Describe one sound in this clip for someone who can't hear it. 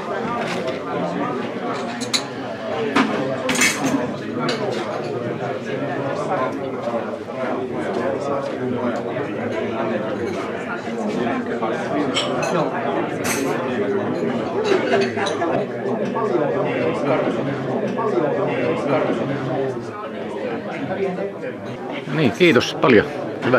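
A crowd of men and women chatter steadily.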